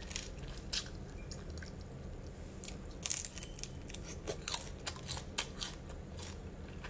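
A young woman chews and slurps seafood close to a microphone.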